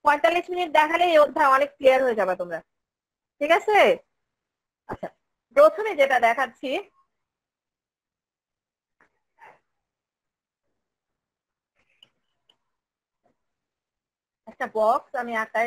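A woman speaks calmly, heard through an online call.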